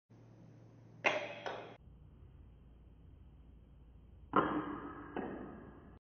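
A kendama ball clacks onto its wooden cup.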